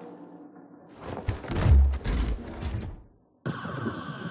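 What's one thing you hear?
A metal case snaps open with loud clunks.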